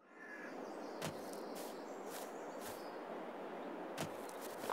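Footsteps thud softly on grass.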